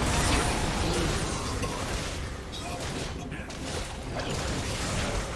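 Video game spell and combat effects clash and burst.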